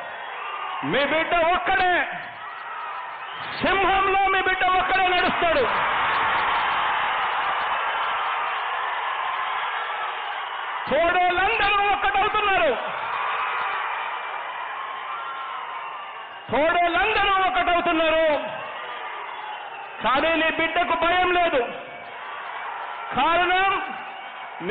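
A large crowd cheers and whistles.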